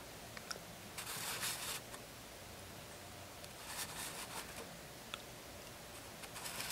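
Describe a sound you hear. Small plastic toy parts click softly as they are handled.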